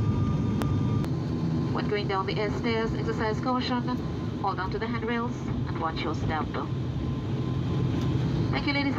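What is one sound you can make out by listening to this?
Tyres rumble along a runway.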